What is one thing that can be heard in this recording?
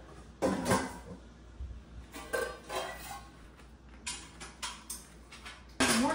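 Pots and pans clatter and clank as they are handled.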